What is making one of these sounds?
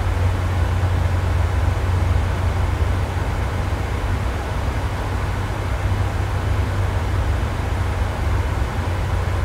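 A jet engine roars with a steady, low drone.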